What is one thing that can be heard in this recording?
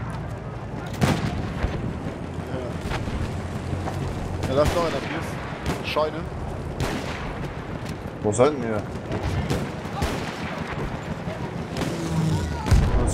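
A rifle fires sharp shots now and then.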